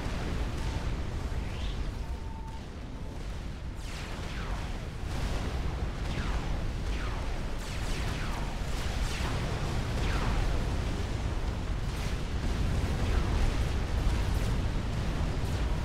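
Explosions rumble and boom without a break.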